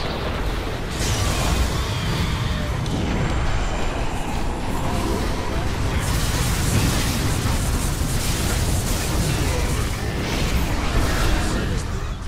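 Spells and explosions crackle and boom in a chaotic battle.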